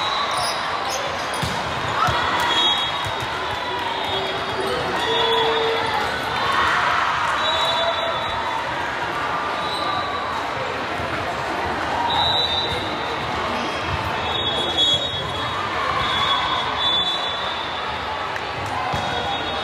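A crowd of players and spectators chatter and call out in a large echoing gym.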